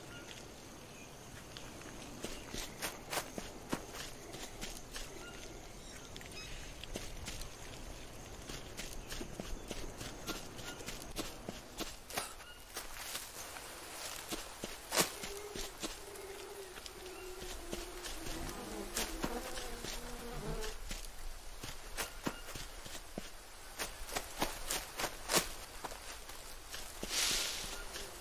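Footsteps crunch and rustle through leaves and undergrowth.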